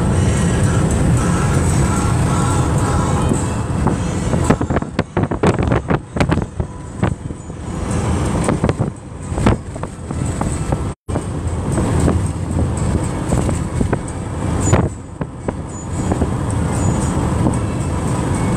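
A car's engine and tyres rumble steadily on a highway.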